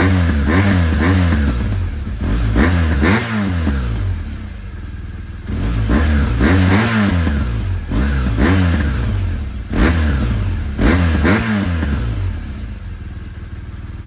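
A motorcycle engine idles and revs up in repeated short bursts close by.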